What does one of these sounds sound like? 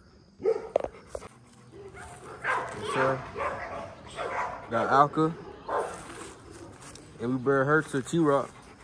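A dog pants close by.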